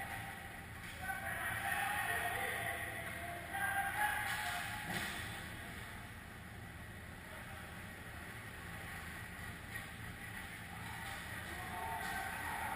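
Ice skates scrape across the ice in a large echoing rink.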